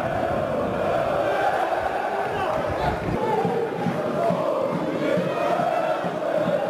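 A stadium crowd chants and sings steadily in the open air.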